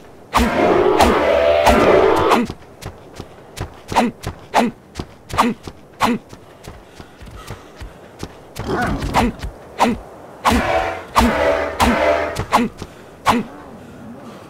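Blows thud against a creature in quick succession.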